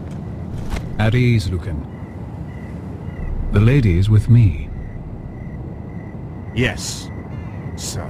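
A man answers in a low, firm voice.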